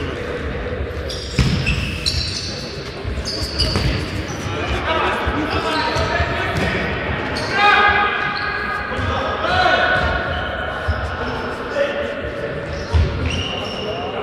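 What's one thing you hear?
A futsal ball is kicked and thuds in an echoing sports hall.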